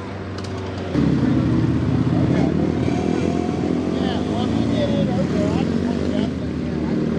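An off-road truck engine roars loudly through mud.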